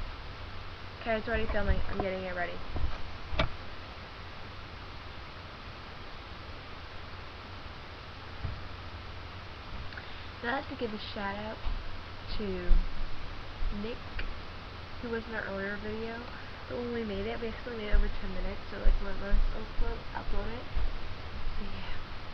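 A young girl talks casually close to a webcam microphone.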